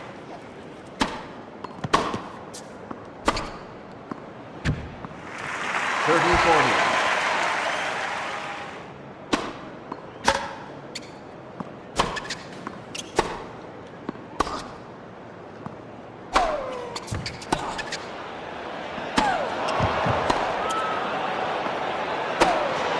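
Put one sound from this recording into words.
Tennis rackets strike a ball with sharp pops, back and forth.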